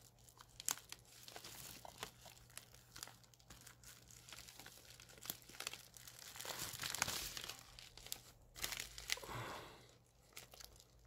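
A plastic mailer bag rustles and crinkles as hands open it.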